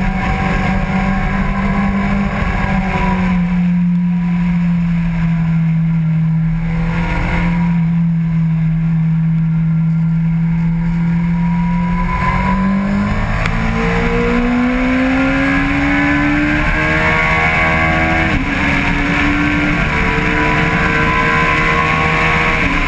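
A motorcycle engine drones steadily through a bend, then revs up through the gears as it accelerates.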